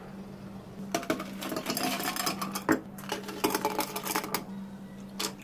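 Ice cubes clatter and clink into a glass.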